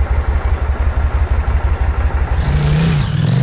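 A motorcycle engine idles with a deep throbbing rumble.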